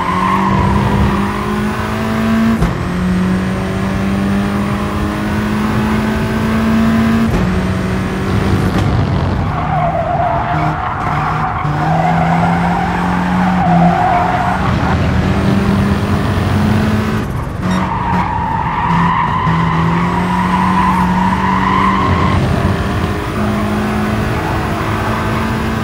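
A racing car engine roars, revving up and down through gear changes.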